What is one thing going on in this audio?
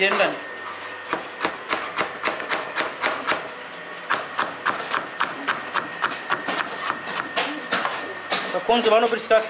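A knife chops carrot on a plastic cutting board.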